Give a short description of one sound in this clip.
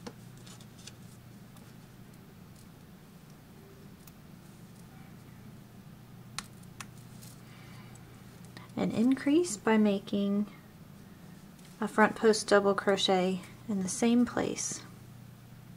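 A crochet hook rustles quietly through yarn.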